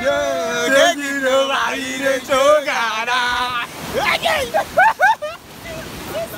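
Young men sing and laugh loudly close by.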